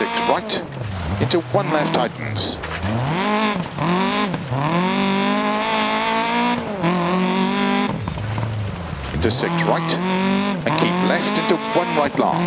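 Gravel sprays and crunches under skidding tyres.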